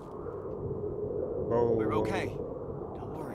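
Ice cracks sharply underfoot.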